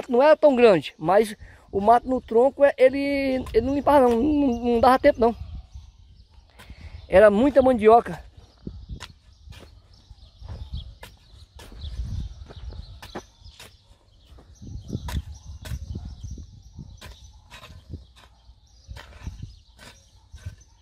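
A hoe chops into dry soil with repeated dull thuds.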